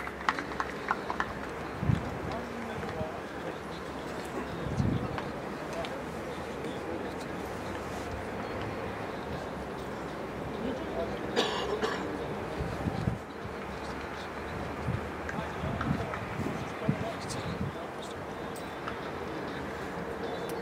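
Wind blows across an open outdoor field.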